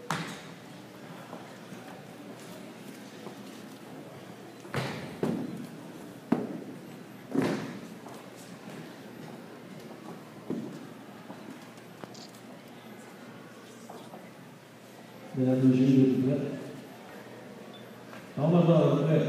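A marching band plays in a large echoing hall.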